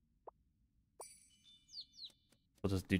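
Short electronic chimes play from a game.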